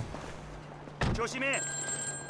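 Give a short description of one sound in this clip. A car door opens and thumps shut.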